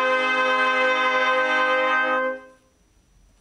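A brass ensemble holds a final chord in an echoing room.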